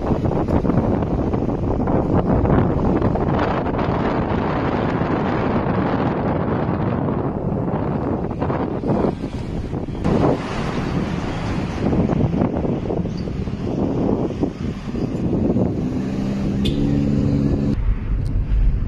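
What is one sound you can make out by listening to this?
Wind rushes and buffets loudly past an open car window.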